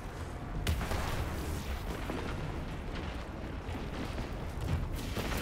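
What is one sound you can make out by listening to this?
Gunfire and explosions crackle in a video game.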